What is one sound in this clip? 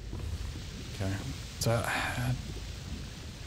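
A young man speaks quietly and briefly into a close microphone.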